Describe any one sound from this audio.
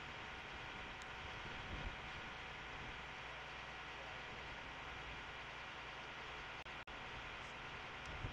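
A truck's engine hums steadily.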